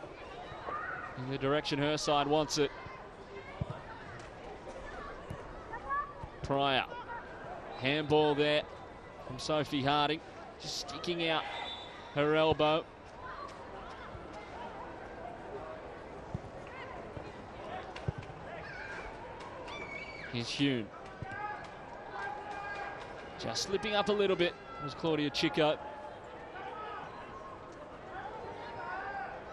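A small crowd murmurs faintly in an open stadium.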